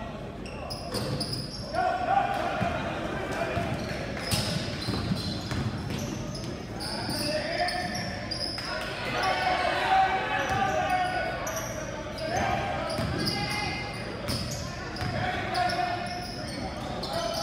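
Spectators in the stands cheer and shout.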